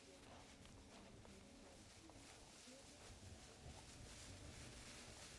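Wind blows across open country.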